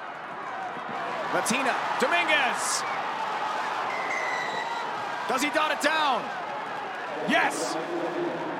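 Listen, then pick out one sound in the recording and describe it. A crowd in a stadium cheers and roars outdoors.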